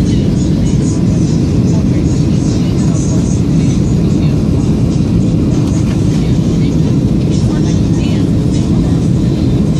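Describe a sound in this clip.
A jet engine roars steadily and loudly from inside an airplane cabin.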